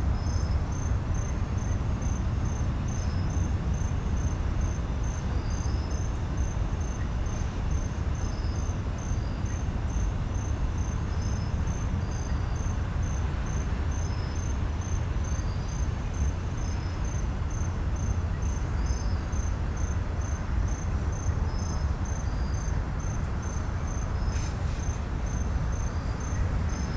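A railroad crossing bell rings in a quick, steady rhythm.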